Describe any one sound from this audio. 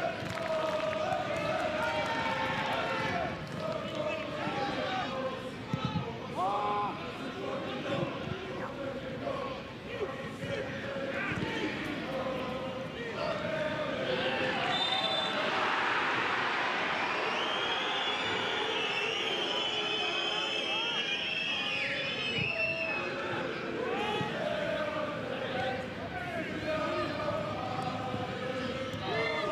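A large crowd cheers and roars outdoors.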